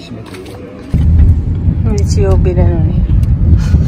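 A car engine rumbles from inside the car.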